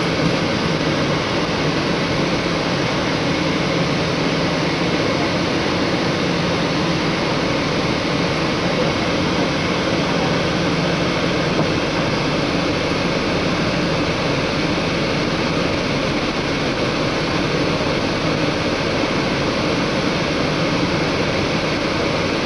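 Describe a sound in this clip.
A vehicle's engine hums steadily, heard from inside.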